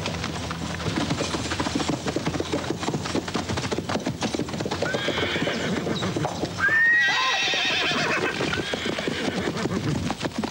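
Horses gallop and their hooves thud on the forest floor.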